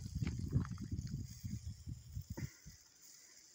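Footsteps crunch on dry gravelly ground.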